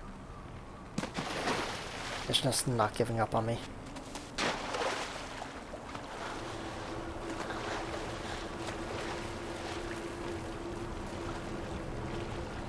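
Water splashes as a swimmer dives in and paddles.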